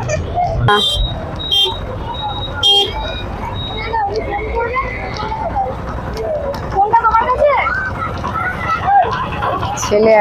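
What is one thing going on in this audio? A crowd chatters in the street nearby.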